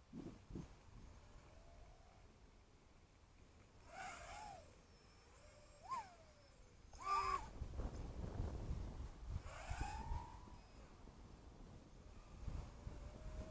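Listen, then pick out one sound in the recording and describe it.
A small model plane's motor whines, rising and falling in pitch.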